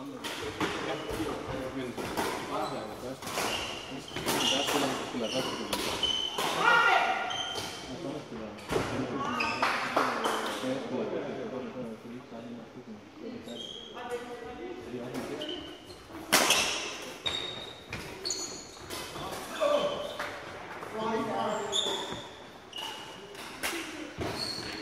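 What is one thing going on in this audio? Young men call out and talk in a large echoing hall.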